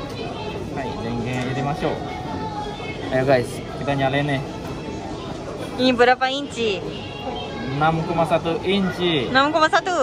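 A young man speaks close by, in a casual, animated way.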